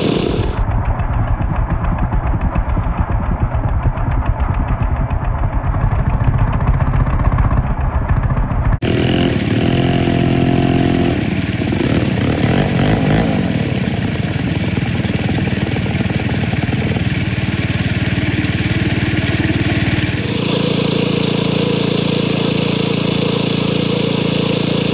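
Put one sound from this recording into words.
A chainsaw engine runs loudly close by, revving and sputtering.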